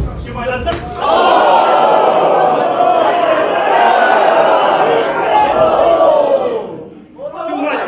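An audience cheers and shouts loudly.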